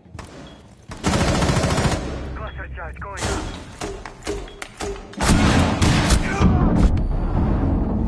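Rapid rifle gunfire rattles in loud bursts.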